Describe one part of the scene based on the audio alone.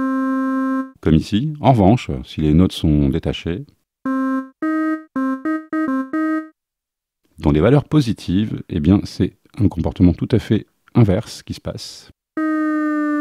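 A synthesizer plays bursts of short, rapid, punchy notes.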